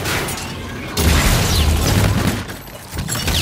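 Rapid gunfire rattles loudly and close by.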